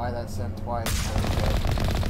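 An explosion bursts with a heavy boom.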